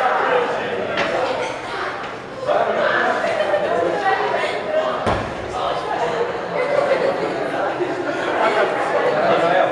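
Several young men talk together nearby.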